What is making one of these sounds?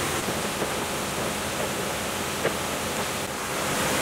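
Water sloshes as hands move in a tub.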